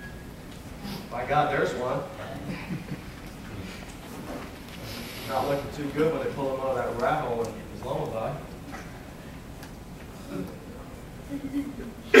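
A middle-aged man speaks calmly to an audience.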